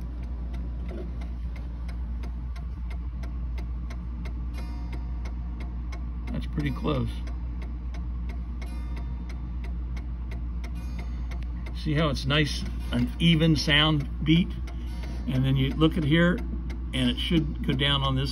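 A clock mechanism ticks steadily and quickly.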